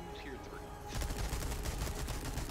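A gunshot bangs loudly.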